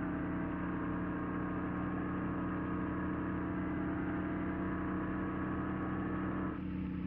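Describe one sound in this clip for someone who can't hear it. A diesel bus engine drones, cruising at speed.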